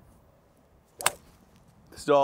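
A golf club strikes a ball with a sharp crack.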